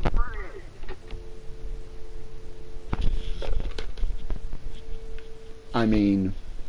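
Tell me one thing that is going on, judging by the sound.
A telephone line hums with a steady tone.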